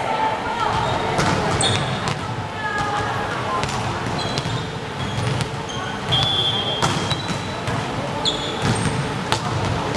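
Young women call out to each other across an echoing hall.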